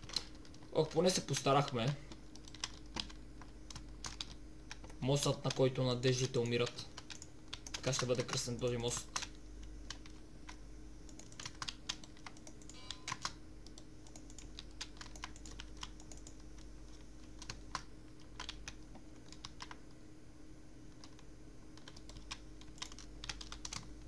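Blocks click and tap as they are placed and broken in a game.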